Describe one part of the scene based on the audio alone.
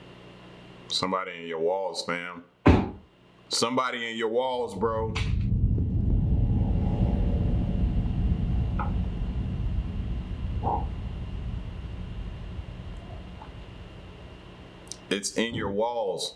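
A man talks in a low voice, close to a microphone.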